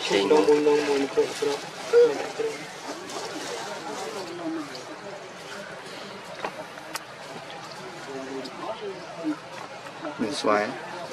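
A baby monkey squeaks and whimpers close by.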